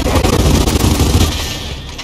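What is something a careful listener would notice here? A grenade explodes with a heavy boom.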